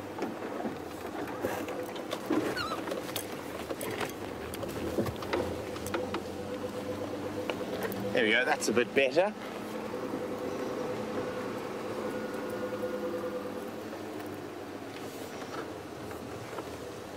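A vehicle's body rattles and knocks over bumps.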